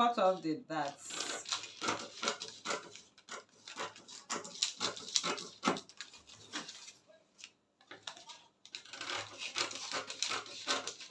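Scissors snip and cut through stiff paper.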